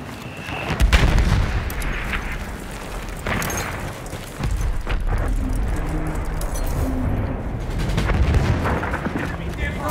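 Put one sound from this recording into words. Gunfire and explosions rumble in the distance.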